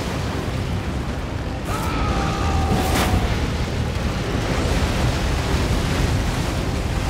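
Flames crackle and roar steadily.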